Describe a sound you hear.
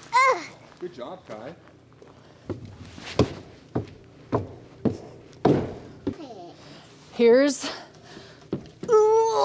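Wooden boards knock and thud as they are carried and set down.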